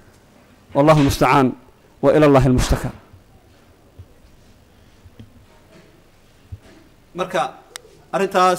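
A man speaks calmly into a microphone, with pauses between phrases.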